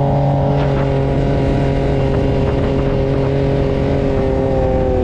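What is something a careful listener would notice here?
A dune buggy engine roars steadily up close.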